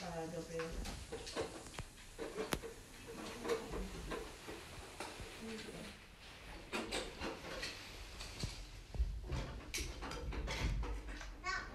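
A plastic toy clatters and knocks against the floor.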